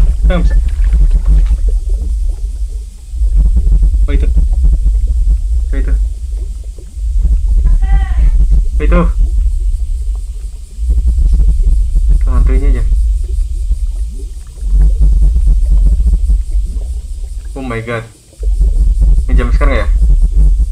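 A young man murmurs and groans fearfully close to a microphone.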